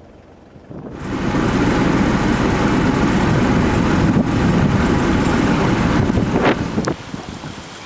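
Rainwater rushes down a stony gutter.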